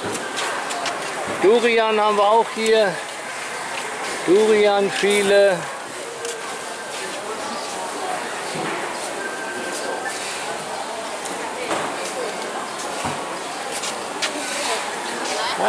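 A busy market crowd murmurs in a large echoing hall.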